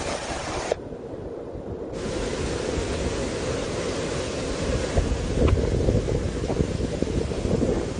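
A muddy waterfall roars and crashes steadily over rocks.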